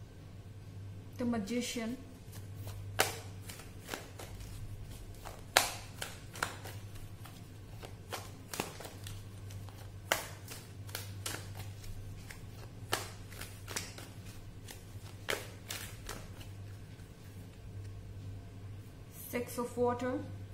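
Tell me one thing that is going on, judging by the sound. Playing cards click and tap as they are handled and shuffled.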